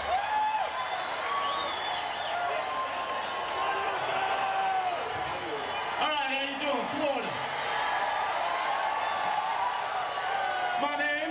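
A man sings loudly into a microphone over a loudspeaker.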